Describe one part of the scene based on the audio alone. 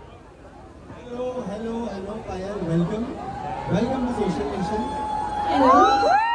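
A young man speaks into a microphone over loudspeakers.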